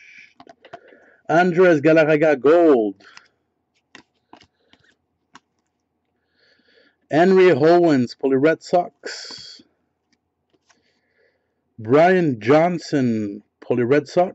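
Trading cards slide and rustle against each other.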